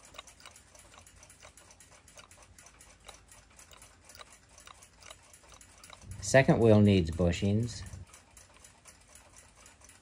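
A clock mechanism ticks quickly and steadily.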